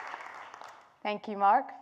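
A young woman begins speaking calmly through a microphone.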